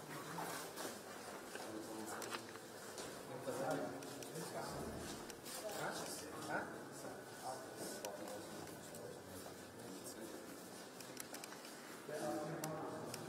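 Several men talk nearby in a murmur of voices.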